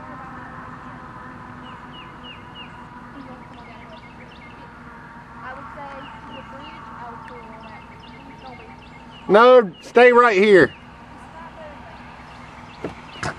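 A car drives along a road in the distance.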